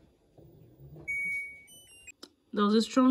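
A washing machine beeps with short electronic tones.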